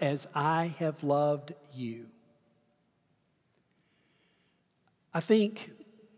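An elderly man preaches forcefully through a microphone in a large echoing hall.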